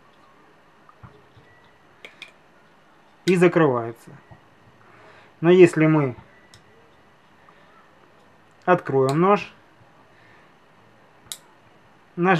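A folding knife blade clicks open and snaps shut.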